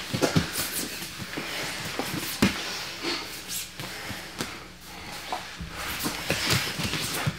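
Bodies shift and thump on a padded mat.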